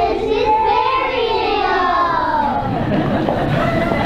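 A woman speaks into a microphone, heard through loudspeakers in a large echoing hall.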